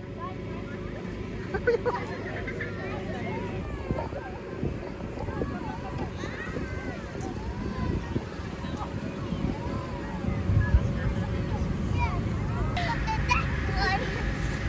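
Children shout and chatter outdoors.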